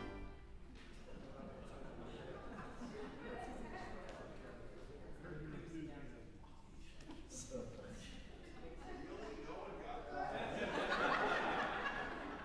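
A man speaks calmly through a loudspeaker in a large echoing hall.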